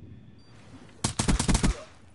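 A gun fires a rapid burst of shots close by.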